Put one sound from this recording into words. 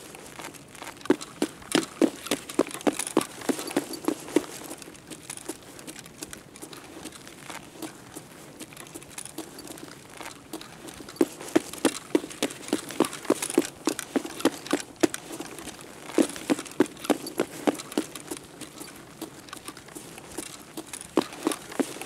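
Footsteps thud on a hard floor at a quick pace, echoing slightly.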